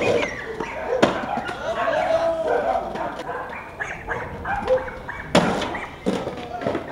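A skateboard clatters onto the pavement as a skater falls.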